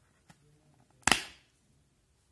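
A plastic case snaps open with a sharp click.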